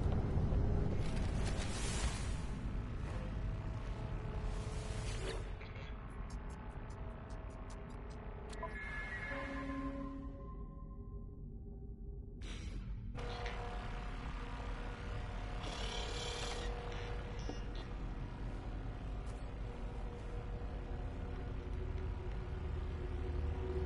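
A low, steady electronic hum drones throughout.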